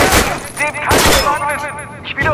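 A rifle fires loud shots in a rapid burst.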